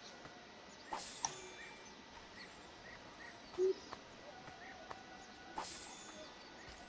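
Coins jingle as a body is looted.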